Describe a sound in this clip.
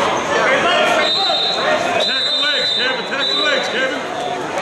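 Shoes squeak on a wrestling mat.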